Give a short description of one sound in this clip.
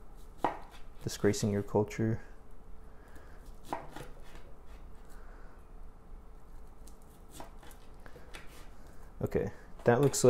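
A knife cuts through a roll and taps against a wooden board.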